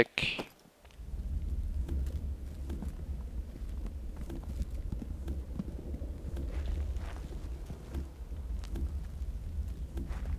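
Footsteps rustle steadily through thick leaves.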